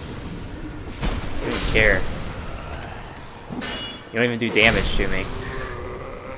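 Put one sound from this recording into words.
A sword slashes and clangs against an enemy.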